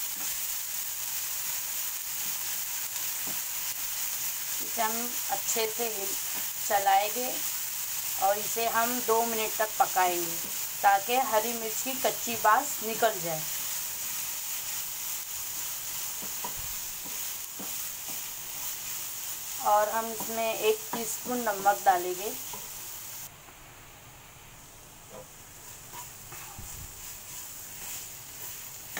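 A wooden spatula scrapes and stirs in a pan.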